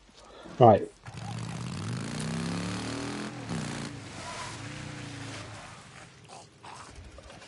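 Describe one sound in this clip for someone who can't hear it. A motorcycle engine revs and roars as it speeds along a road.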